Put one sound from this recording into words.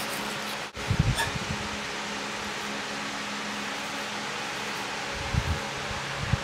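An acoustic guitar thumps softly as it is handled.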